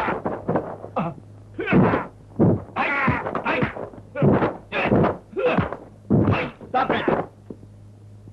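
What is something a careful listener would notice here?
A man shouts loudly and forcefully, close by.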